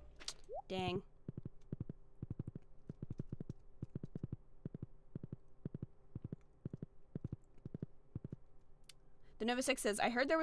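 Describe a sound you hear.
Horse hooves clop quickly and steadily on the ground.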